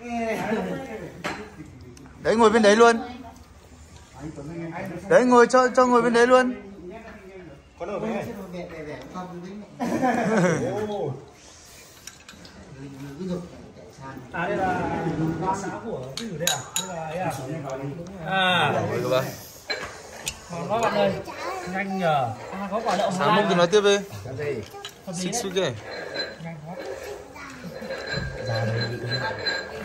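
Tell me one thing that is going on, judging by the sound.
Several young people talk together nearby.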